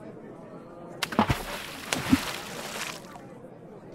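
Water pours and splashes out of a jar.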